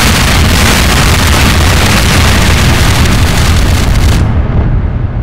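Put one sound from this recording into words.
A loud explosion roars and rumbles, then fades.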